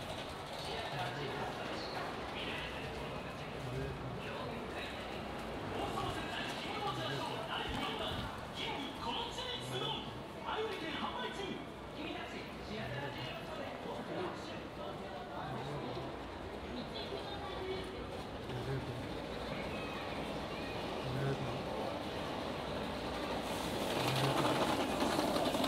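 A crowd of passers-by murmurs in a large indoor hall.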